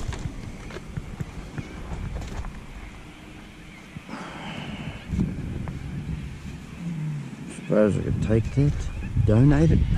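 Cloth rustles as a jacket is shaken and lifted.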